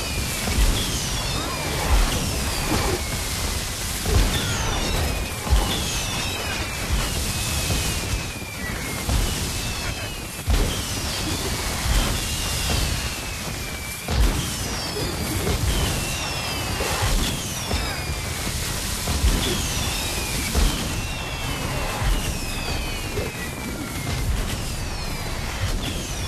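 Sparkling spell effects whistle and crackle with falling tones.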